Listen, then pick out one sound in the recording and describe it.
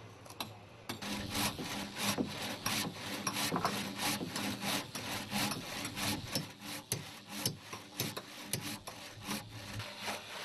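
A hand saw cuts through a timber plank.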